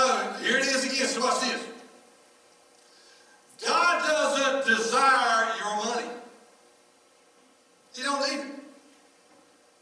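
A man speaks calmly through a microphone in an echoing hall, pausing between phrases.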